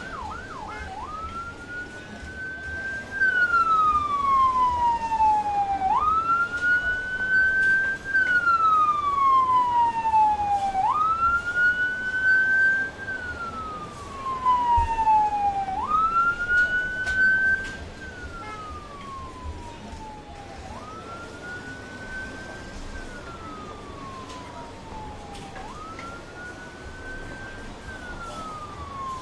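An ambulance siren wails, rising and falling over and over.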